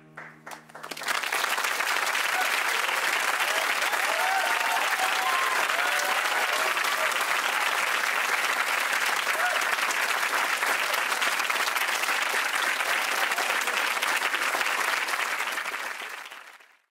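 Heavy rain pours steadily and loudly onto a hard floor.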